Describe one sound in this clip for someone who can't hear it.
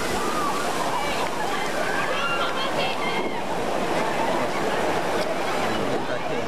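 Water splashes loudly over a boat full of riders.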